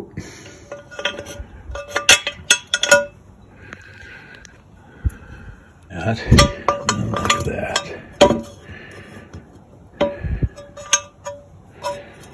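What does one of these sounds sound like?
Small plastic parts click and clatter as they are fitted together by hand.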